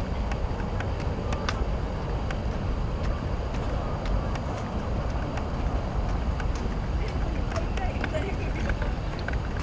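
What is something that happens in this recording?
Distant city traffic hums steadily.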